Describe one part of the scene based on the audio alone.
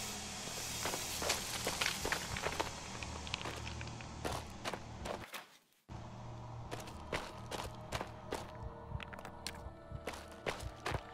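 Footsteps tap on a hard stone floor.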